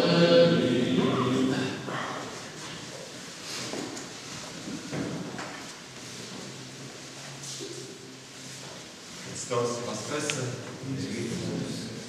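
A choir of men chants in a slow, steady, echoing way.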